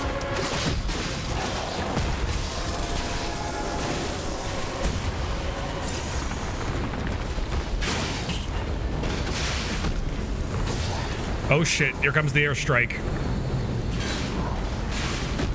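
Low rumbling battle noise roars steadily.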